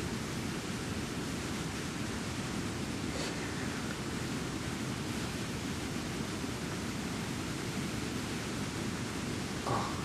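A river flows with a steady rushing of water.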